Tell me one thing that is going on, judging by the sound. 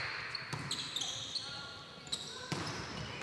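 Sneakers squeak sharply in a large echoing hall.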